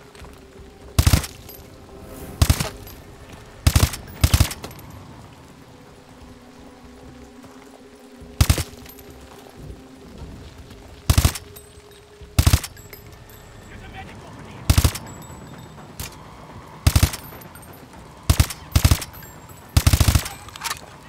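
Single gunshots fire one at a time, loud and close, with a short echo after each.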